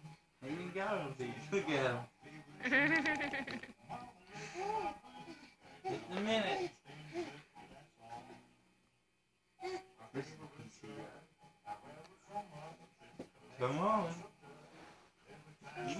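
A woman talks nearby to a baby in a high, sing-song voice.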